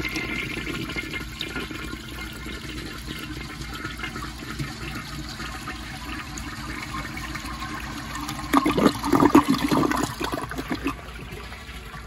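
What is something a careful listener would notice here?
Water swirls and gurgles as a toilet flushes.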